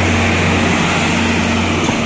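A diesel generator engine hums steadily.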